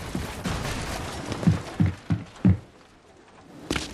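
Wooden walls shatter and crash apart.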